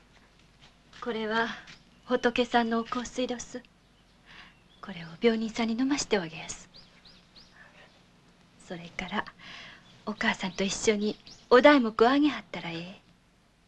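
A woman speaks calmly and gently nearby.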